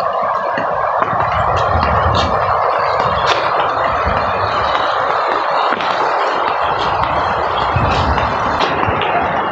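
A muddy river rushes and gurgles nearby.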